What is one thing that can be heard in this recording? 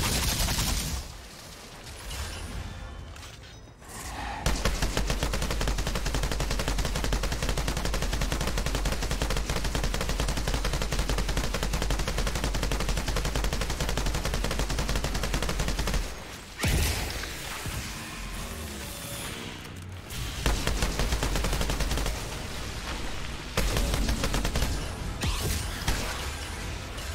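A rapid-fire gun shoots in long bursts.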